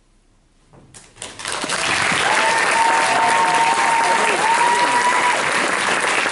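An audience bursts into loud applause and cheering.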